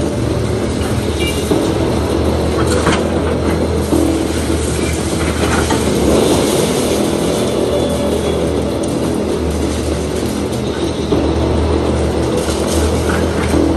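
Metal scrapes and knocks against broken masonry.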